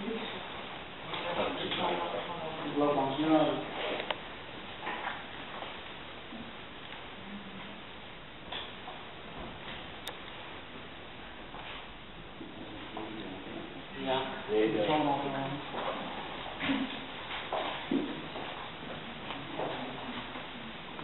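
Adults talk quietly nearby in a room.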